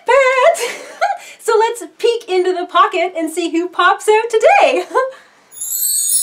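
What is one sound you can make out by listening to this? A young woman talks excitedly and cheerfully, close by.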